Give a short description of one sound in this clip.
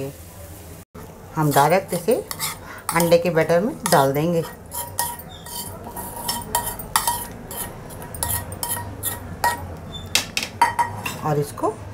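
A metal spoon scrapes food from a pan.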